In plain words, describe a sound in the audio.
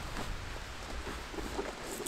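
A sleeping bag rustles as it is smoothed out.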